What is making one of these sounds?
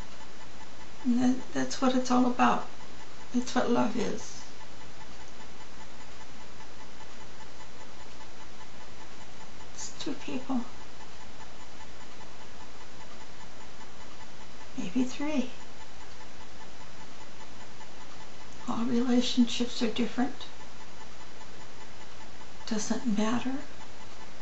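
An elderly woman speaks calmly through a webcam microphone, with long pauses.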